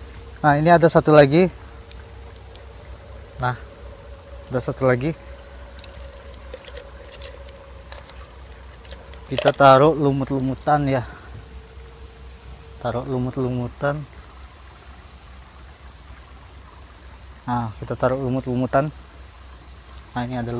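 A young man speaks calmly in short bursts, close by.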